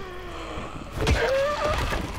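A heavy kick thuds against a body.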